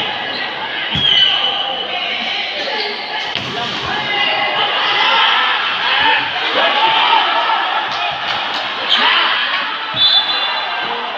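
Players strike a volleyball with sharp slaps.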